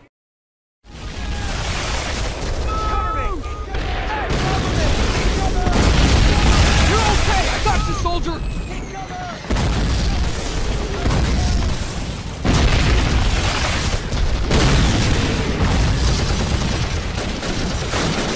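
Gunfire cracks in bursts.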